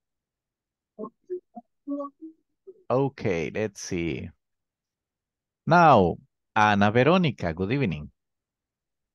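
A man speaks calmly through a headset microphone over an online call.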